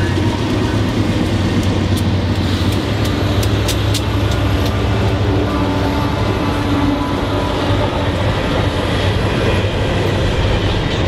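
Freight cars clatter and squeal over rails.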